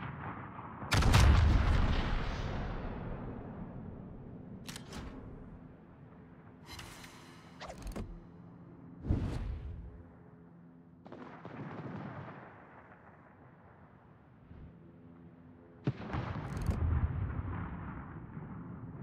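Heavy guns fire in loud booming blasts that rumble away.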